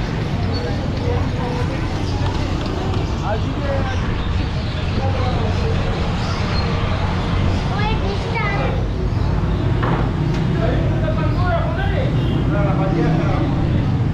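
Auto-rickshaw engines putter nearby.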